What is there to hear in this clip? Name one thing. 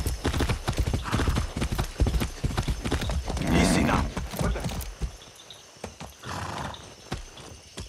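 A young man speaks calmly into a close microphone.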